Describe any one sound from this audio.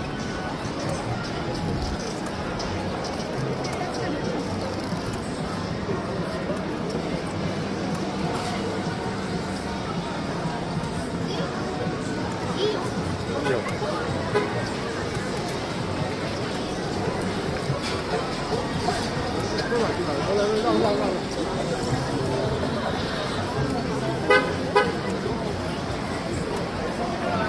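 A busy crowd murmurs and chatters on a street outdoors.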